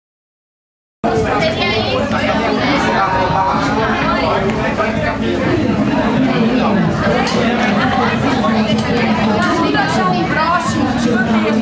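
A crowd of people chatter loudly in an echoing room.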